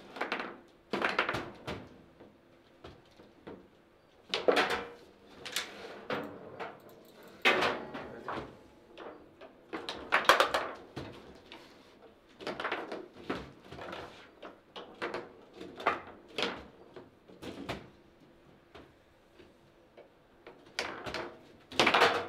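A table football ball clacks sharply against plastic players and the table walls.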